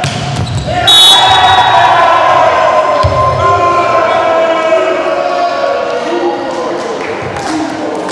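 Players shout and cheer after the point.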